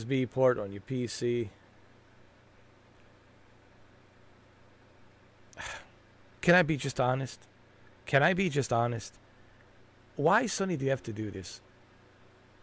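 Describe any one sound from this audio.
A middle-aged man speaks close to a microphone, calmly and in short bursts with pauses.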